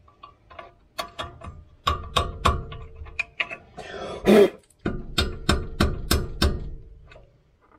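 A wrench clicks and taps against metal close by.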